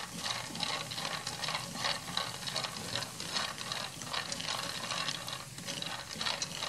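Peanuts sizzle as they roast in a pan.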